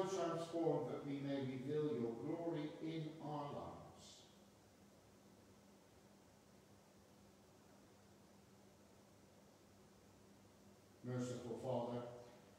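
A middle-aged man speaks calmly and prayerfully, his voice ringing slightly in a large echoing room.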